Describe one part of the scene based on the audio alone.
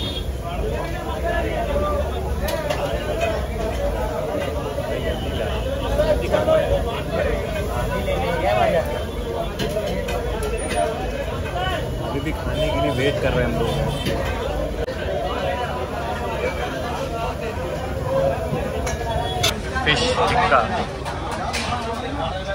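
A crowd murmurs in a busy, noisy room.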